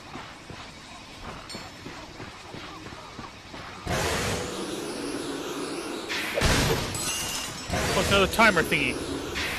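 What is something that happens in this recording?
Blaster shots zap and crackle in quick bursts.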